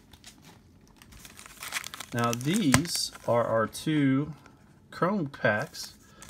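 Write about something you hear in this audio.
Foil card packs crinkle as they are handled.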